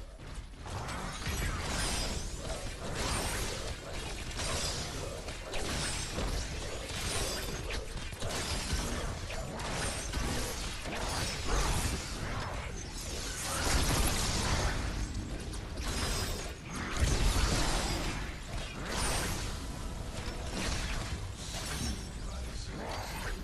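Weapons clash and energy blasts burst in a fast fight.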